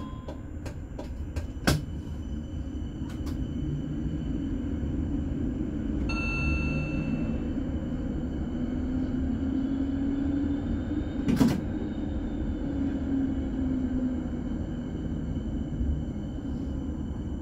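A tram rumbles and rattles along its tracks.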